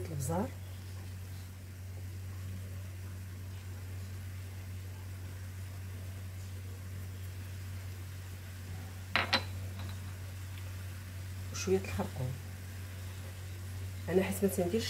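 Vegetables sizzle softly in a frying pan.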